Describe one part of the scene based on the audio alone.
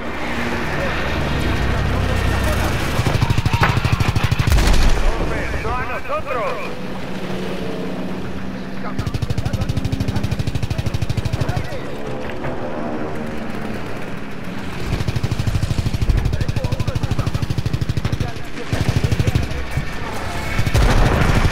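Aircraft engines roar steadily.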